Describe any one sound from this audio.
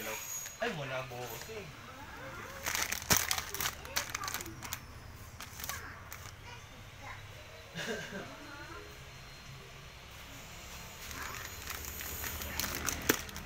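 A plastic bag crinkles and rustles as a hand handles it.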